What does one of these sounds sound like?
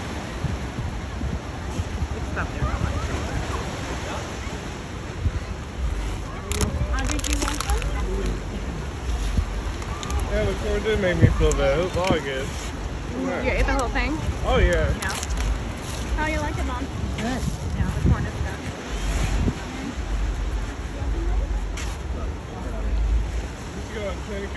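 Waves surge and churn against rocks.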